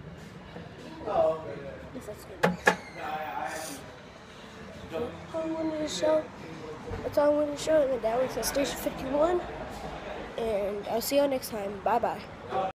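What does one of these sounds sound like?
A young boy talks close by with animation.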